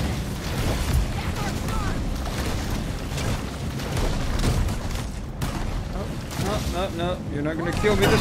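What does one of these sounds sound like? Boat engines rumble on the water.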